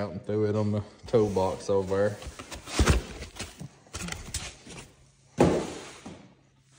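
Cardboard rustles and scrapes as a box flap is pulled open.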